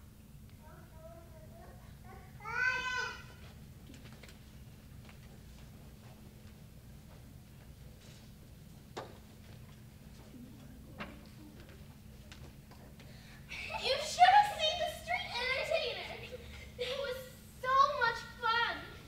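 Young children speak and call out loudly in a large echoing hall.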